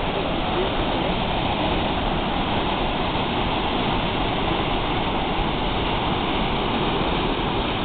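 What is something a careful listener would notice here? A waterfall roars and rushes loudly close by.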